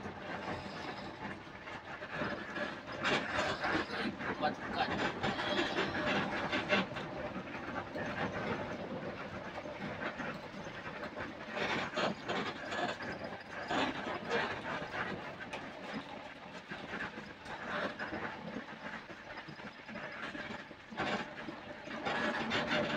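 Tyres roar on asphalt.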